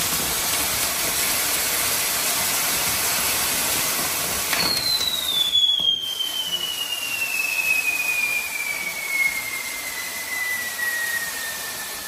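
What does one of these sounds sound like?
A spinning firework wheel hisses and crackles loudly.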